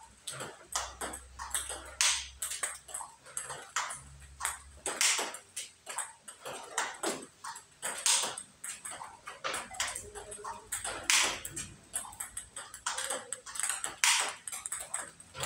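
A ping-pong ball clicks rapidly back and forth off paddles and a table.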